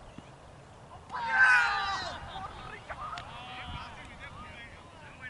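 Several men shout loudly outdoors, some distance away.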